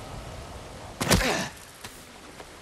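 A man lands heavily with a thud.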